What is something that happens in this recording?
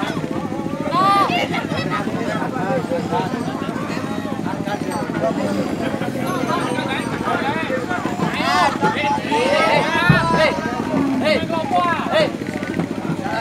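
A crowd of people chatters and calls out all around.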